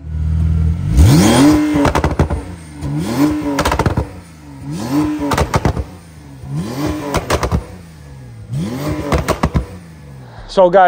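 A car exhaust crackles and pops between revs.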